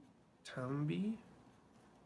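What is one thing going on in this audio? A felt-tip pen scratches lightly on paper.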